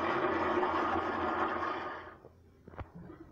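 A toilet flushes with rushing, swirling water.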